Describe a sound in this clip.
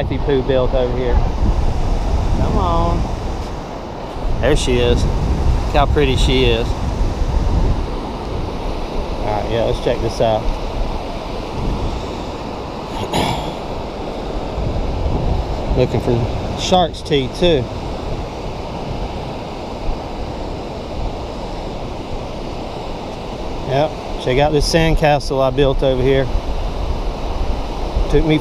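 Wind buffets loudly against the microphone.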